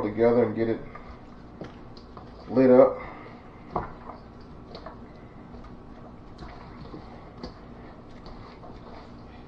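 Wet chicken pieces squelch as hands toss them in a metal bowl.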